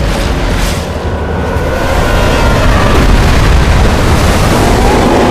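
A huge beast growls deeply.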